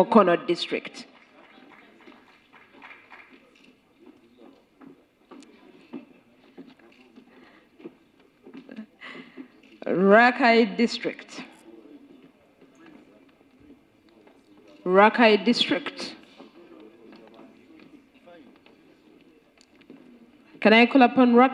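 A seated audience murmurs quietly.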